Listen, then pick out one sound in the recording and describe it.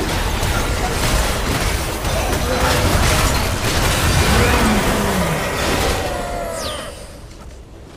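Game spell effects crash and blast in a busy battle.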